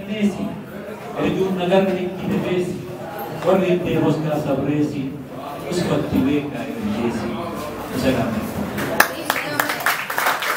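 A middle-aged man speaks calmly into a microphone, heard through a loudspeaker in a room.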